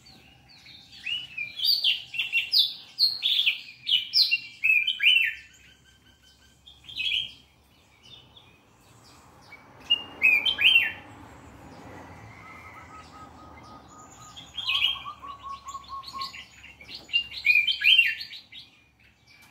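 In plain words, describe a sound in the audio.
A small caged bird sings in bursts of sharp, chirping trills.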